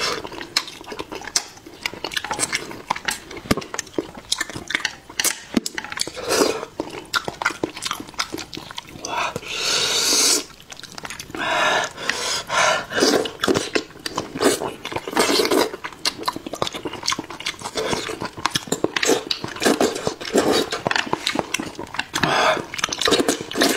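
A young man chews and smacks noisily close to a microphone.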